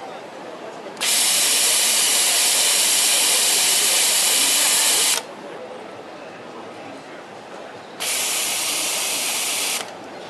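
A sewing machine whirs loudly at high speed in short bursts.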